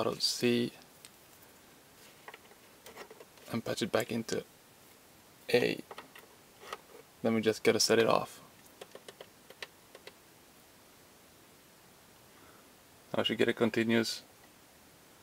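A modular synthesizer plays short bursts of buzzing, warbling tones with pauses between them.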